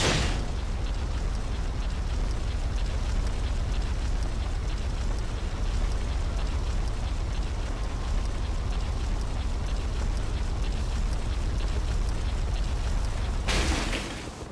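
Heavy metal chains clink and rattle as a creature shuffles about.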